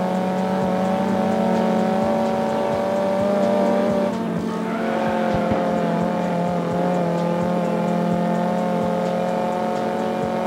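A car engine revs high and steady.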